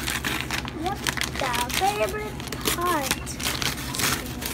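A young child babbles and squeals.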